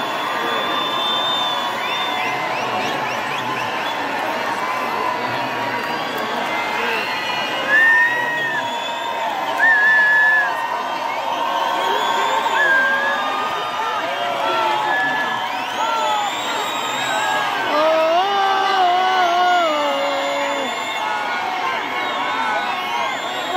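Music plays loudly through big loudspeakers.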